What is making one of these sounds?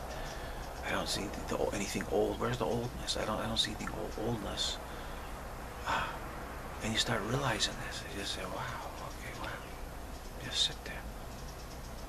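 A middle-aged man speaks calmly, close to the microphone.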